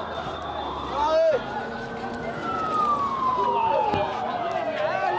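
An ambulance siren wails nearby.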